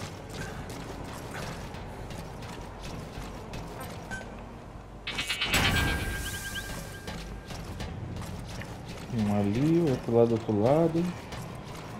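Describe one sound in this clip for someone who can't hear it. Boots clang on metal stairs.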